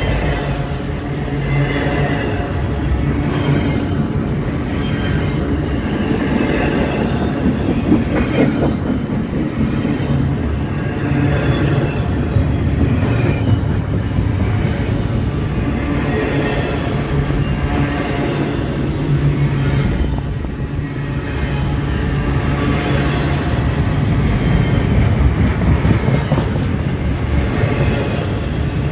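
A long freight train rumbles past close by, its wheels clattering and squealing on the rails.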